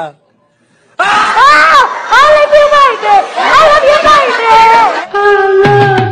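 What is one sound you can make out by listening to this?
A young child cries and wails loudly.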